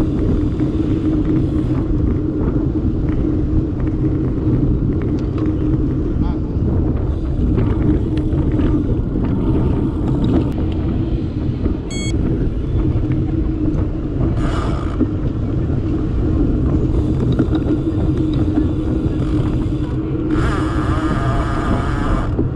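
Strong wind rumbles loudly against a microphone.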